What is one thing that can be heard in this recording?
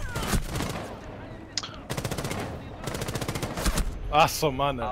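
Rapid gunshots ring out in bursts.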